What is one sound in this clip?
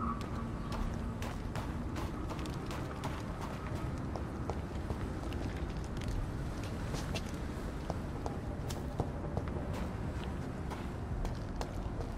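Footsteps hurry over hard ground.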